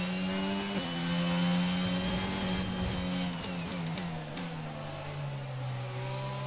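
A racing car engine roars at high revs and drops in pitch as the car slows.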